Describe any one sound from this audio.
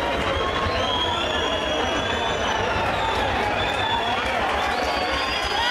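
A large crowd chatters and cheers in the background.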